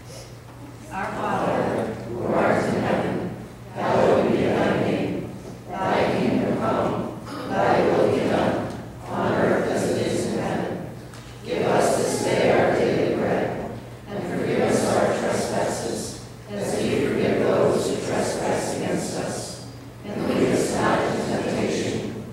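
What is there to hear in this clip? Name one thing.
A woman reads aloud through a microphone in an echoing hall, pausing between phrases.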